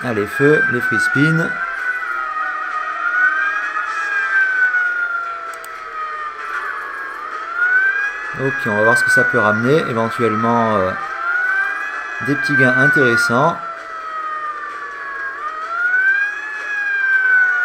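Slot machine reels spin and chime.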